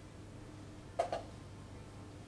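A chess piece is set down on a wooden board with a short knock.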